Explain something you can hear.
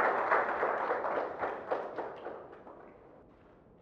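A crowd applauds loudly in a large room, then the applause dies away.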